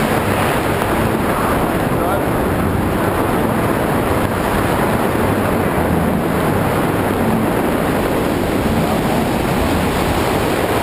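Strong wind roars loudly and steadily past, as in a free fall.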